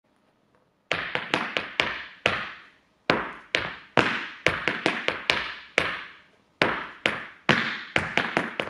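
Hard dance shoes tap and click sharply on a wooden floor, echoing in a large room.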